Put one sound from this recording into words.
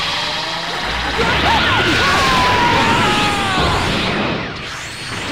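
A charged energy beam roars loudly and swells.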